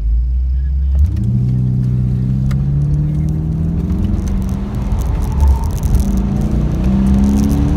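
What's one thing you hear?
A car engine revs up and accelerates, its pitch rising in repeated climbs.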